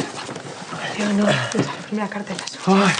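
A woman speaks happily and laughs.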